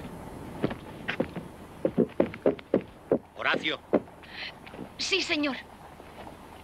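Footsteps thud quickly on wooden stairs.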